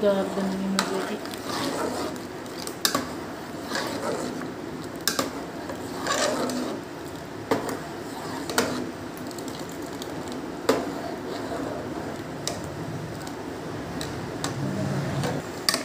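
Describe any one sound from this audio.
A metal ladle clinks against the side of a pot.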